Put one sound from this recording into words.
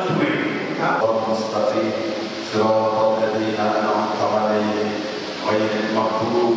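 A man recites a prayer in a steady chanting voice, heard through a microphone.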